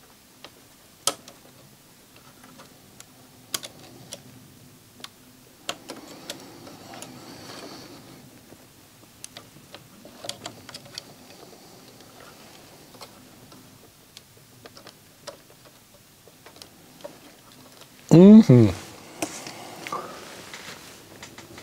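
Small metal parts click and tick as fingers work them into place.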